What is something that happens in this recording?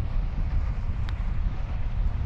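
A putter taps a golf ball.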